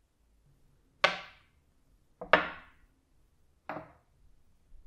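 Metal parts clink as they are set down on a table.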